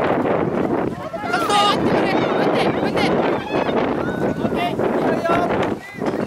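Young players shout and call out to each other across an open outdoor field.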